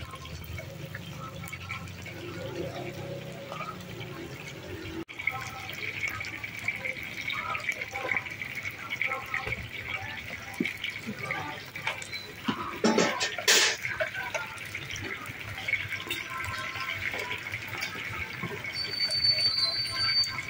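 Hot oil sizzles and crackles steadily in a wok.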